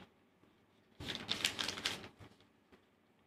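A sheet of paper rustles as it is shifted.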